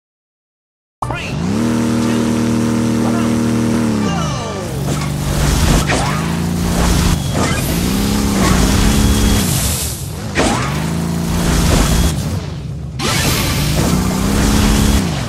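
A game vehicle's engine revs up and down loudly.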